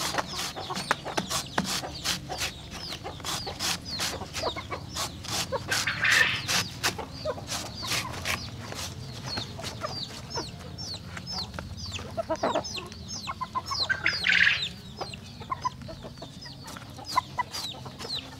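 Chickens cluck close by.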